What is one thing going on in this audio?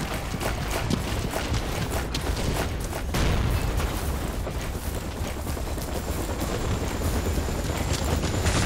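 Quick footsteps thud on dirt and grass.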